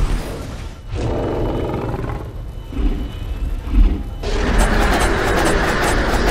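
A huge monster roars loudly and gutturally.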